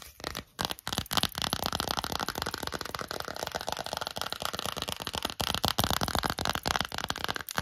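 Fingers crinkle and rustle thin plastic wrapping close to a microphone.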